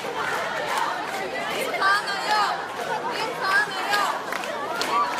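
A young woman shouts with passion close by.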